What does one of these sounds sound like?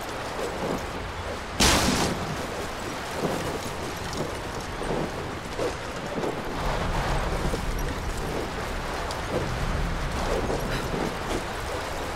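Flying debris clatters and bangs against a rock wall.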